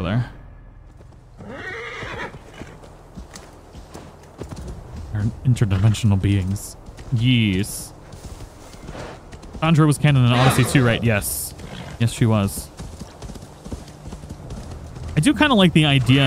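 A horse's hooves crunch steadily through snow.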